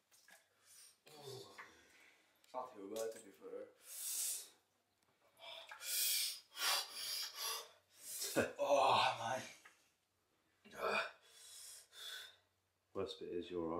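A man gasps and breathes sharply.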